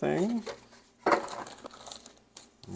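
A plastic bag crinkles in someone's hands.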